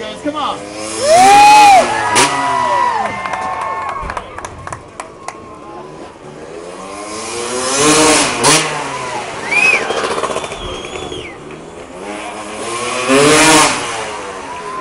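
A motorcycle engine revs loudly in bursts, rising and falling in pitch.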